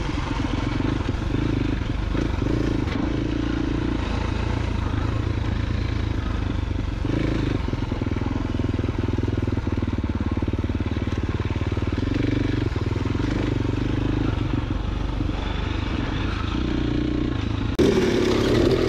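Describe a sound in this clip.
A dirt bike engine hums and revs up and down close by.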